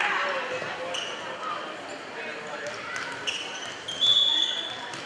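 Shoes squeak sharply on a gym floor.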